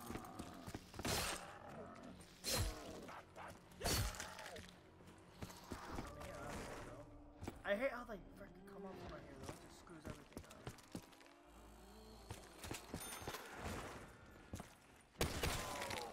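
A zombie growls and snarls nearby.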